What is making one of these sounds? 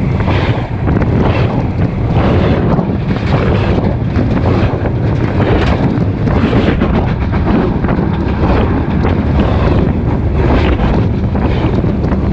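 Freight cars roll directly overhead, steel wheels rumbling and clattering on the rails.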